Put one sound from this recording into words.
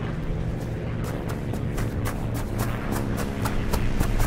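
Footsteps pound quickly on dry ground.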